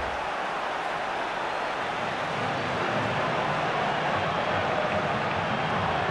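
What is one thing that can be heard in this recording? A stadium crowd roars steadily all around.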